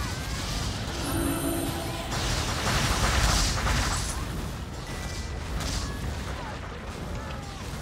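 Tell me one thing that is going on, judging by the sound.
Game sound effects burst and crackle with fast fighting blasts.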